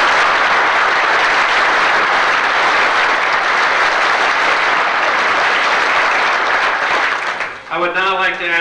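Applause rings out, loud and steady, then fades.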